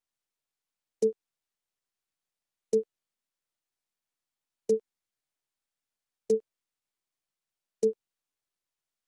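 A short soft menu click sounds several times, evenly spaced.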